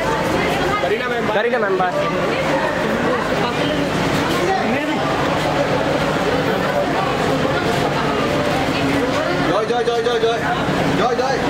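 A crowd of men and women talk and call out loudly close by.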